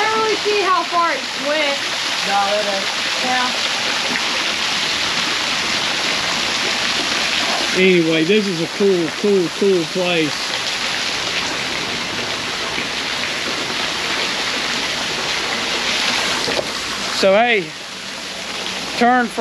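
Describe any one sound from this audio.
Water splashes steadily down a small waterfall.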